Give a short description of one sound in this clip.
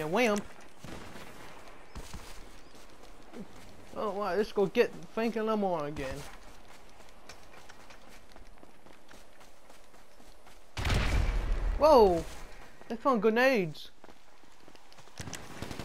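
Footsteps run quickly over dirt and grass.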